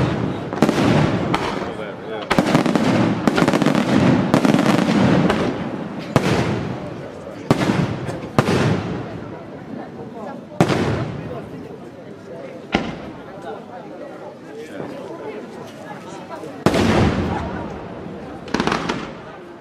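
Fireworks boom and bang overhead, one after another.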